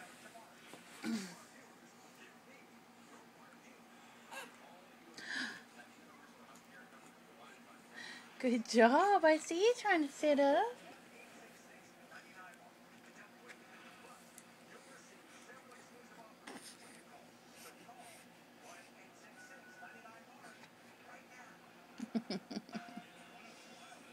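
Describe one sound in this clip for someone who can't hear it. A baby coos and gurgles softly close by.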